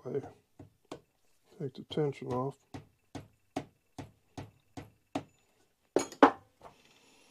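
A wrench clicks and clinks against metal parts.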